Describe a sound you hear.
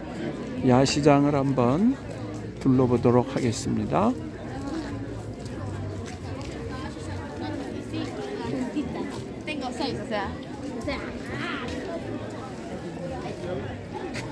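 A crowd of people chatters and murmurs nearby outdoors.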